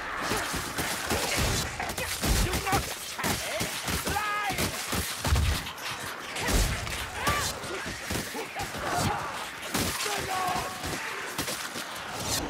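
Creatures screech and snarl in a frantic melee.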